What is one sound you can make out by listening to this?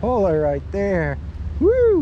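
A small fish splashes at the water's surface.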